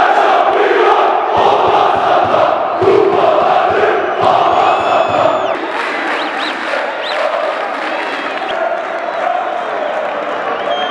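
A large crowd chants loudly, echoing around an open stadium.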